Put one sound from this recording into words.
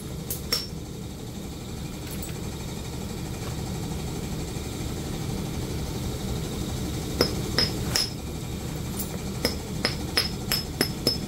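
A small tool taps and scrapes against stone with sharp clicks.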